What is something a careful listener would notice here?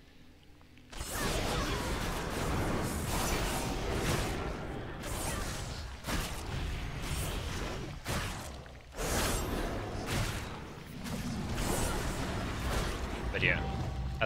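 Magic spells crackle and boom during a fight.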